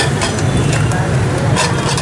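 A spoon clinks against a small bowl.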